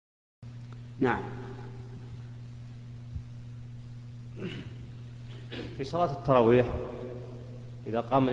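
A man chants a prayer into a microphone, heard through loudspeakers in a large echoing hall.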